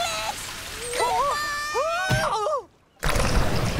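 A cartoon monkey squeals in a high, excited voice.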